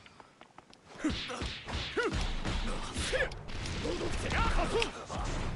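Blows and blasts crash loudly in a game fight.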